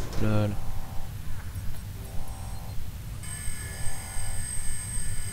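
A small electronic device beeps and chirps.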